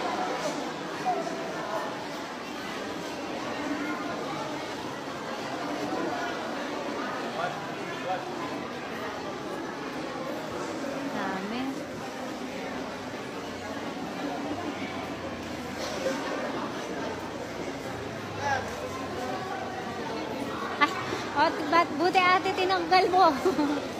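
A crowd of men and women chatters steadily in a large echoing hall.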